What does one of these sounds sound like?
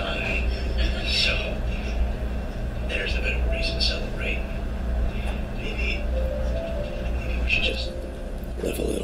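A young man speaks calmly and softly.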